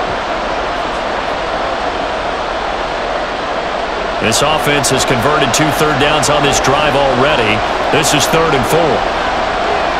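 A large stadium crowd roars steadily in the background.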